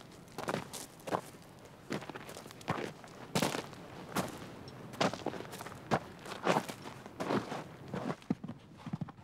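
Boots crunch on stony ground.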